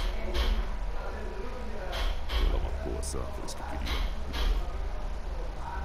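A man speaks in a deep, calm voice.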